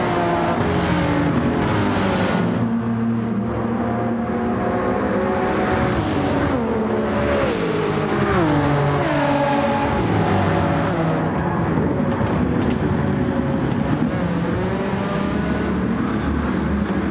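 Several racing car engines roar loudly, their pitch rising and falling as they shift gears.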